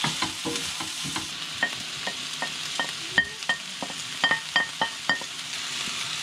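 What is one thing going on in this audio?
A wooden spatula knocks and scrapes against a pan.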